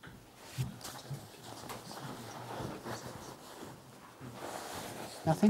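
Fabric rustles softly as a cloth is moved.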